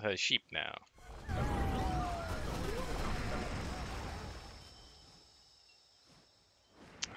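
Magical blasts whoosh and crackle in a fight.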